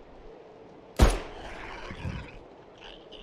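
A pistol fires a single loud shot that echoes briefly.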